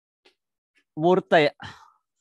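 A man speaks close into a headset microphone.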